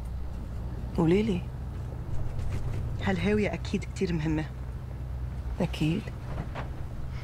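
A second young woman answers softly.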